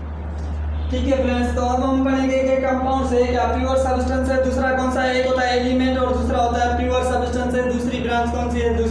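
A young man speaks loudly and with animation, close by.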